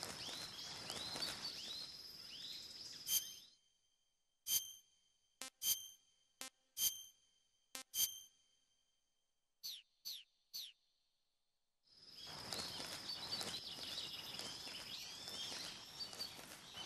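Forest insects and birds chirp steadily outdoors.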